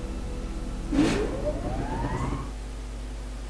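A machine starts up with a rising whine.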